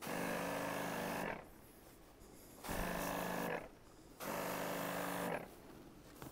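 A garden sprayer hisses in short bursts.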